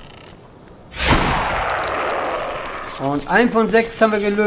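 Small coins jingle as they scatter.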